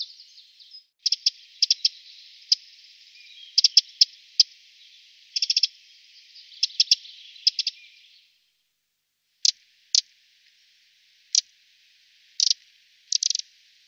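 A small bird calls with sharp, high chips.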